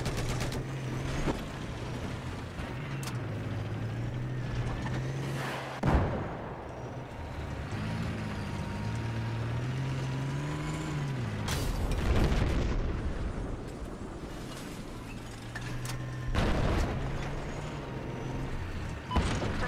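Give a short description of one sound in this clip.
A tank engine rumbles and whines steadily.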